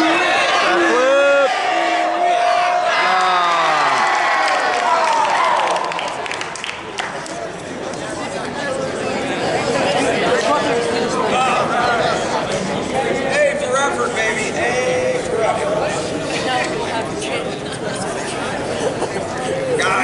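A crowd of children chatters and shouts with excitement in a large echoing hall.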